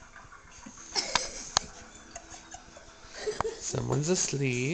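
A baby giggles and squeals up close.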